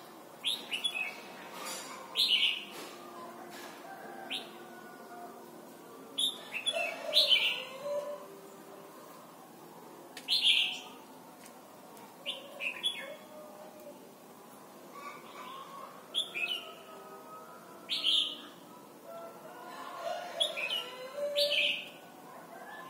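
A songbird sings loud, sharp chirping phrases close by.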